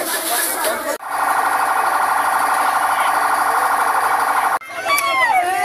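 A vehicle horn blares steadily.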